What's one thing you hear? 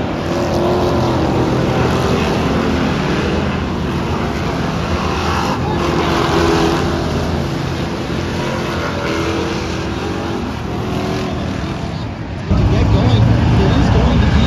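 Engines rev and whine up and down in pitch.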